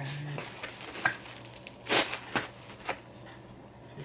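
Cardboard rustles and thumps as a pizza box is handled.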